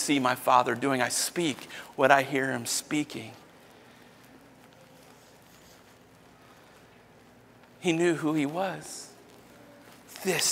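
A man speaks with animation through a microphone in a large hall, pausing between phrases.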